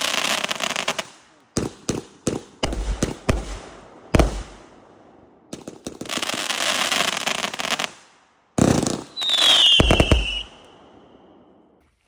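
Firework stars crackle and sizzle after each burst.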